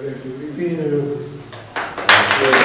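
An elderly man speaks calmly into a microphone nearby.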